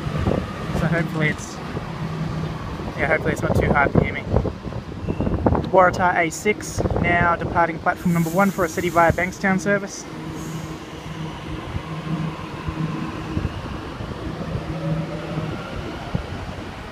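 A train's motors hum steadily nearby.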